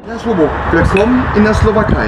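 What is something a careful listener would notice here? Beer glasses clink together in a toast.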